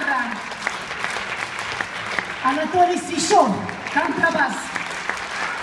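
A small band plays the last notes of a song.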